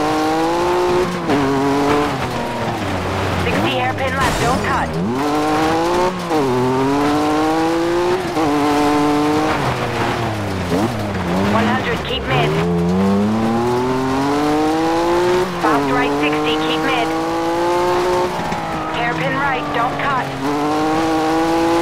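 A rally car engine revs hard, rising and dropping in pitch as the gears shift.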